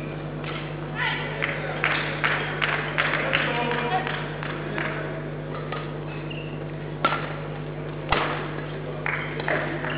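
A shuttlecock is struck sharply by rackets in a rally.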